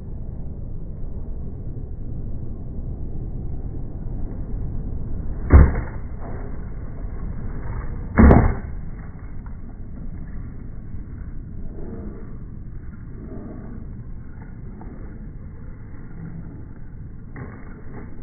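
Skateboard wheels roll over rough concrete.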